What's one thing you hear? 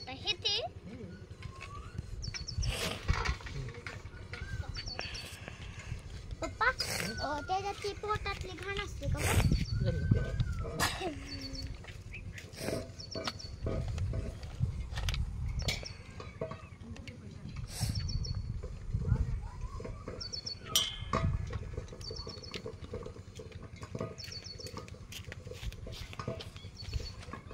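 Food and metal plates clink and rustle as hands pick through them.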